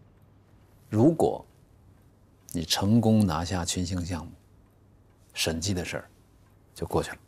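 A middle-aged man speaks calmly and close by, in short bursts with pauses.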